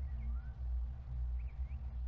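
A small box is set down on a wooden shelf.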